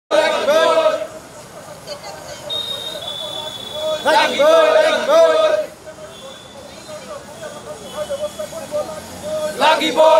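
A group of men shout slogans in unison outdoors.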